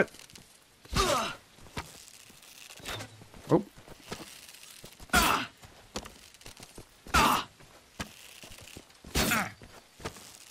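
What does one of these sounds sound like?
A bowstring twangs sharply as arrows are loosed, again and again.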